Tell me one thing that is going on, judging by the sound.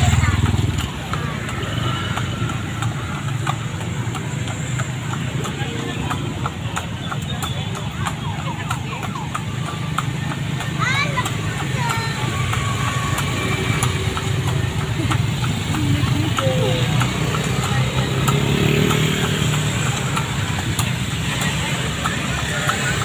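Cart wheels rumble over the road.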